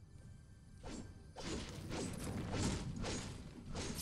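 A chest opens with a clatter.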